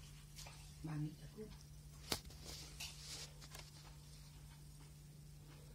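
A hand rubs and rustles against a kitten's fur.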